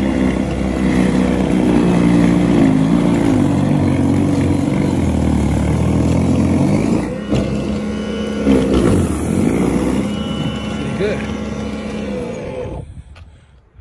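An electric snow blower whirs loudly with a steady hum.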